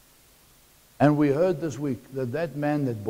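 A middle-aged man speaks with animation, heard from across the room.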